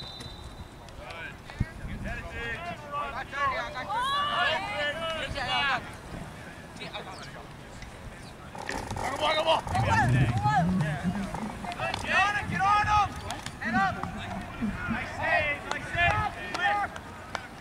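A crowd of young men and women shout and cheer outdoors.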